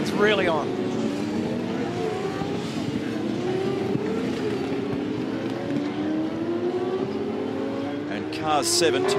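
Racing car engines roar and change gear in the distance.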